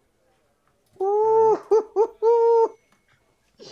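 A man exclaims loudly in long, drawn-out calls close to a microphone.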